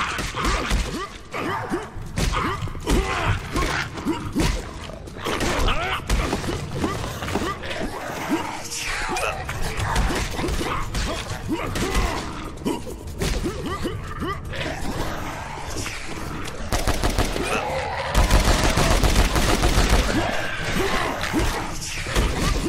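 Creatures squelch and burst apart when they are hit.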